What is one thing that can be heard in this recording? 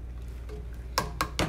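A spoon clinks against the side of a metal pot.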